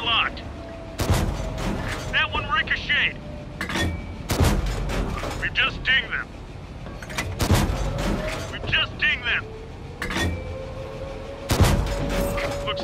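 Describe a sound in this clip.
A tank cannon fires loud booming shots every few seconds.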